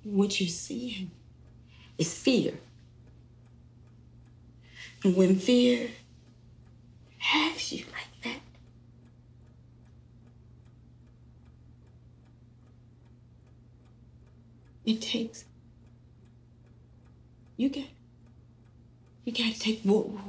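A middle-aged woman speaks quietly and haltingly, close by.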